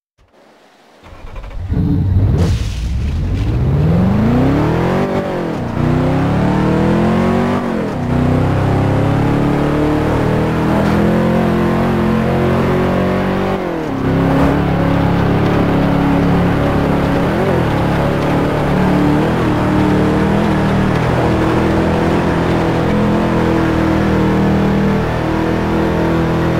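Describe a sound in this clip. A car engine revs up hard, rising in pitch and dropping with each gear change.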